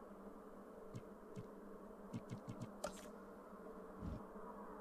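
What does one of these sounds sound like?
Soft game interface clicks sound as menus open.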